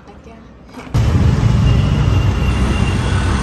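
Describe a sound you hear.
An auto-rickshaw engine rumbles loudly.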